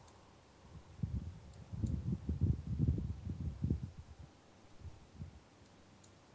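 A young man speaks quietly and close into a microphone.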